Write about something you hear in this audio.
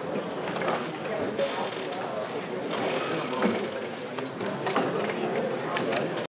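A man lectures steadily through a microphone in a large echoing hall.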